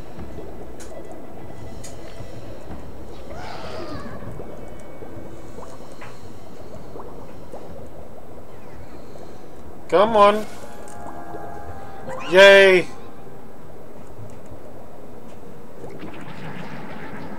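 A man talks calmly into a nearby microphone.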